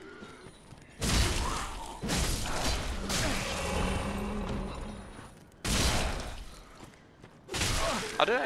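Blades swing and strike in a loud fight.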